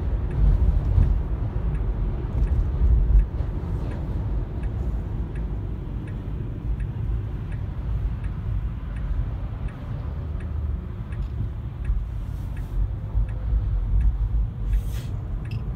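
Tyres roll steadily over the road with a low rumble.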